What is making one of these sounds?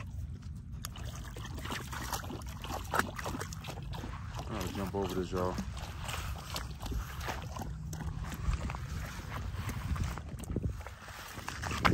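A dog splashes and wades through shallow water.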